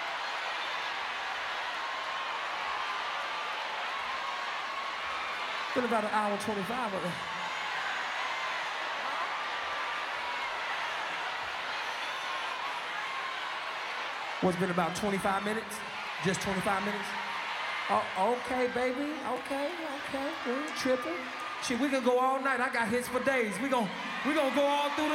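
A large crowd cheers and screams steadily.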